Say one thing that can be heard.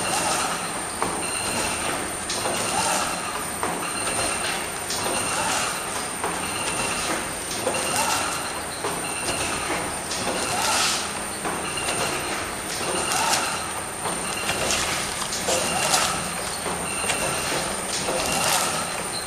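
A machine thumps and clicks in a regular rhythm as it cuts.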